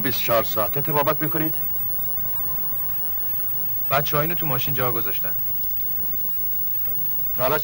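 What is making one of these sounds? A younger man replies in a low, tense voice.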